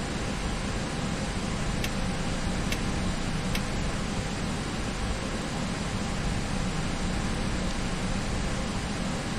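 A jet airliner's engines drone steadily while it rolls along the ground.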